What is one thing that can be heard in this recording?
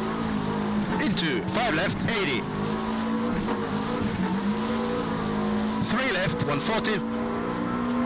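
A man speaks with animation, close to a headset microphone.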